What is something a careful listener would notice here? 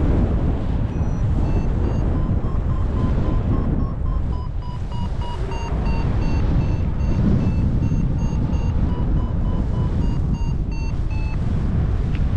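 A flight instrument beeps in a rising and falling series of electronic tones.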